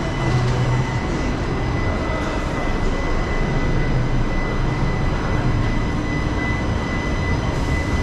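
An escalator hums steadily.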